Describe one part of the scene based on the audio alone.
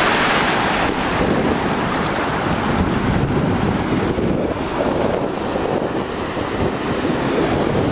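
Shallow water swirls and fizzes around bare feet.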